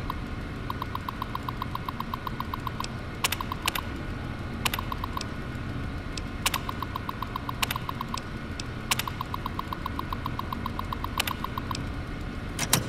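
A computer terminal chirps in rapid bursts as text prints out.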